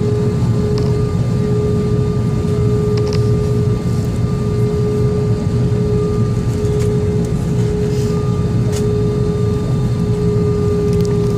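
An aircraft rumbles low as it taxis slowly.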